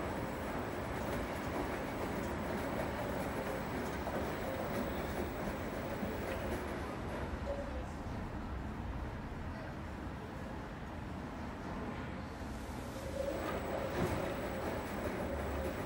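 Wet laundry sloshes and thumps as it tumbles in a washing machine drum.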